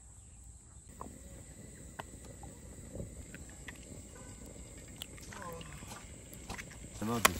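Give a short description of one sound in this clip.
Eggs sizzle quietly as they fry on a griddle.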